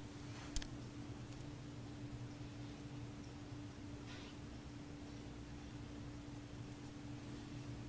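A woman breathes softly and slowly in her sleep.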